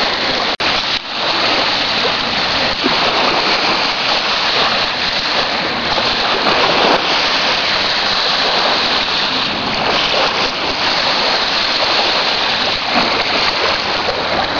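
Small waves lap and wash onto a sandy shore.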